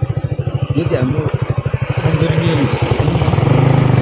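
An off-road vehicle drives past close by.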